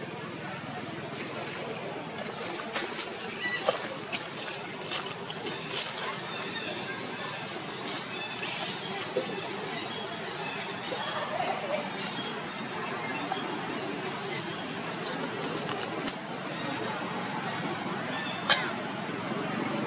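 Dry leaves rustle and crackle as monkeys move across the ground.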